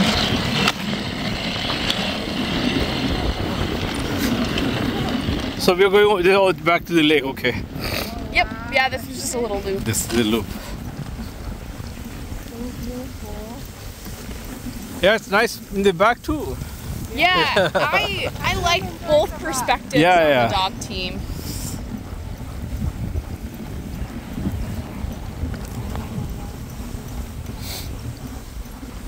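Sled dogs' paws patter on snow.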